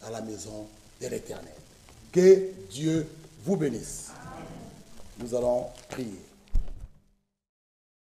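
A man preaches with animation into a microphone in an echoing hall.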